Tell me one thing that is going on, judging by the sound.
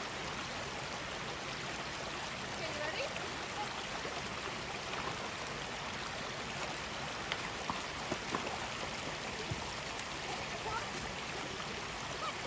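A horse's hooves splash and clomp through shallow water.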